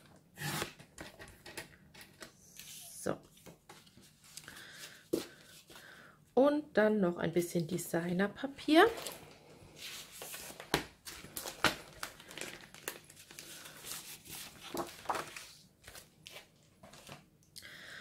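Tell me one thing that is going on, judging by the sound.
Paper sheets rustle and slide.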